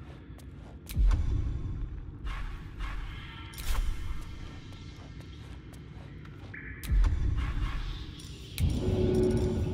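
A deep whoosh sounds as a game menu opens.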